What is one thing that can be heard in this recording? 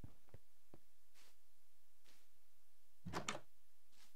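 A wooden door clicks open.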